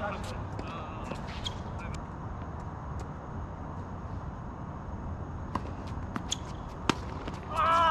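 Tennis rackets strike a ball back and forth.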